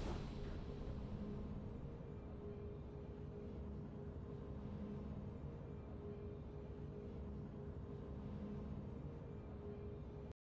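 Quiet, low game music plays in a slow, repeating loop.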